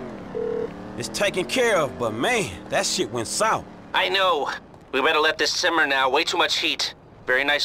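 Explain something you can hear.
A man talks on the phone with animation.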